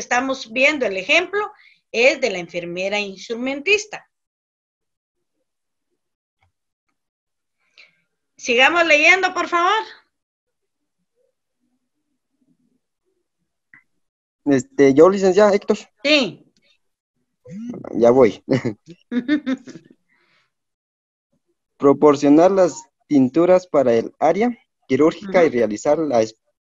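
A man speaks calmly through an online call, in bursts with pauses.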